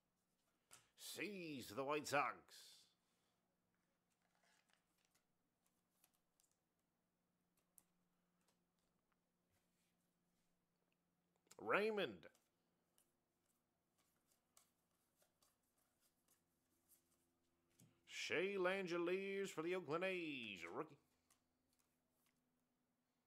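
Trading cards softly slide and flick against each other.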